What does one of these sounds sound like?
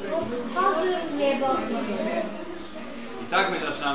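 A young girl speaks up clearly nearby.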